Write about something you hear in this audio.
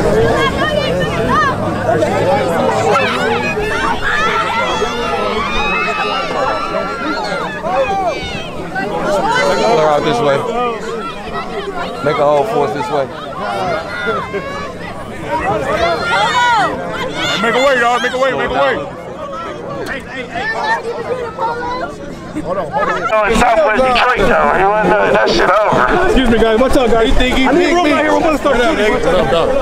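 A crowd of men and women talk loudly all around outdoors.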